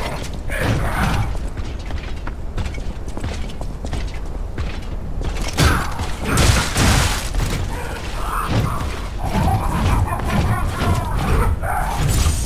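A large creature thuds heavily as it lands and swings.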